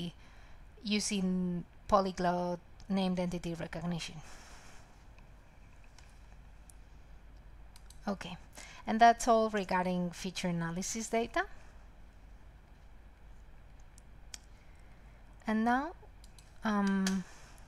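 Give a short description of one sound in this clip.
A young woman speaks calmly into a microphone in an online call.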